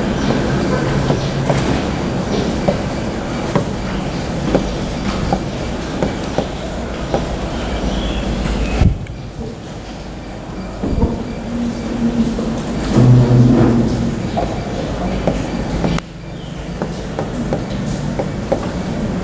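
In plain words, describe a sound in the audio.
A pen taps lightly on a glass board.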